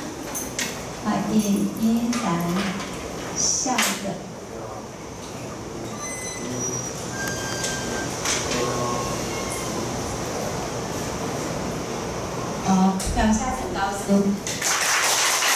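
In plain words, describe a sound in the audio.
A man speaks through a microphone in an echoing room.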